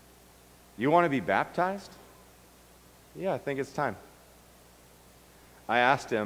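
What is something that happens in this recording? A middle-aged man speaks calmly into a microphone, with short pauses.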